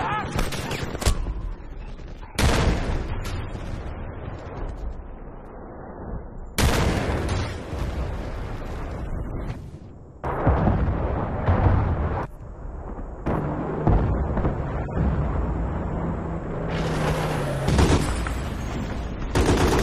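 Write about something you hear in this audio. Explosions boom loudly again and again.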